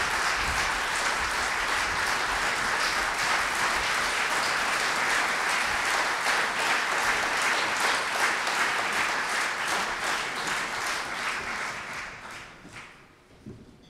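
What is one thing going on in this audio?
An audience applauds loudly in a large hall and the applause dies away.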